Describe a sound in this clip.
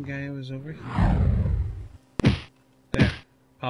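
A winged creature shrieks as it swoops in.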